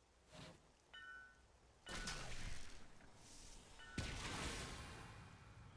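Game chimes ring as items drop.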